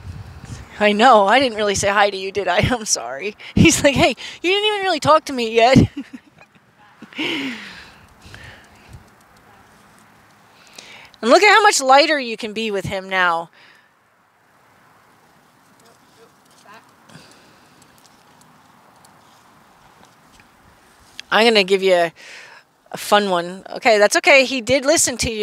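A woman talks calmly outdoors, close by.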